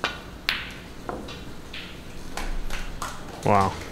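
A cue ball strikes other snooker balls with sharp clicks.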